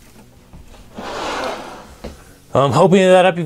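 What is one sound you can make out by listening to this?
A wooden table leaf slides out with a rubbing scrape.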